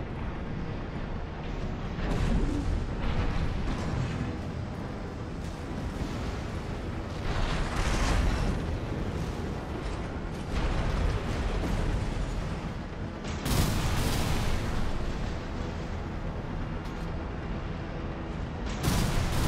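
A heavy mechanical engine rumbles steadily.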